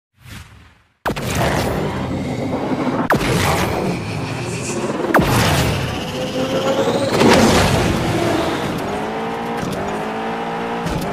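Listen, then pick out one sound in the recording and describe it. Sports car engines roar and rev as a race gets under way.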